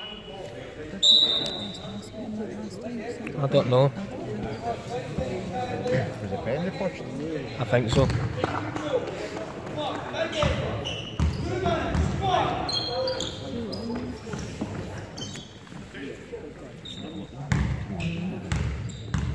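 Basketball shoes squeak on a wooden floor.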